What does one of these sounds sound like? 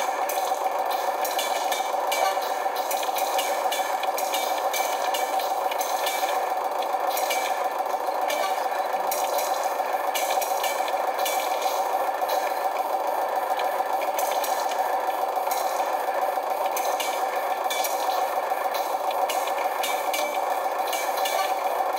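Video game swords clash and whoosh through a television speaker.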